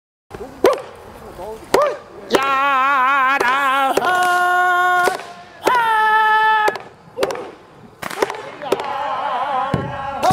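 An elderly man chants loudly in long, wavering held notes, close to a microphone.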